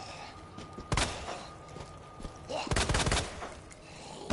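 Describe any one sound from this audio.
Gunshots fire several times, sharp and loud.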